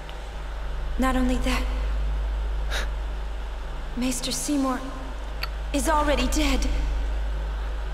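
A young woman speaks with alarm.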